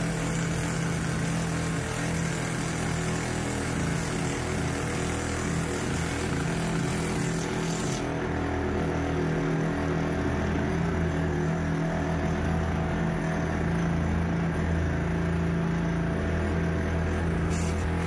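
A power mixer whirs steadily, churning wet cement.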